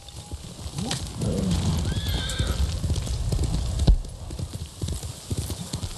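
A horse's hooves gallop over grassy ground.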